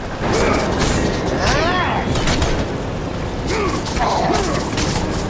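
Heavy blows land with sharp, crunching impacts.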